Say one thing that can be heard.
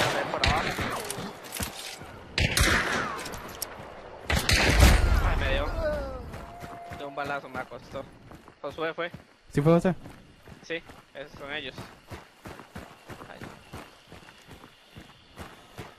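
Footsteps tread on dirt and leaf litter.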